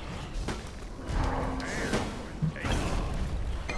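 Weapons clash and magic blasts burst in a fight.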